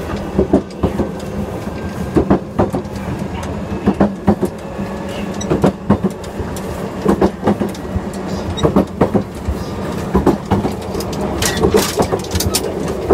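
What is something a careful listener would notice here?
An electric commuter train hums as it accelerates.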